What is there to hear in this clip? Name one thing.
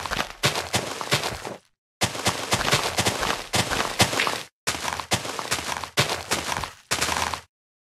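Dirt crunches and scrapes in quick repeated bursts as it is dug.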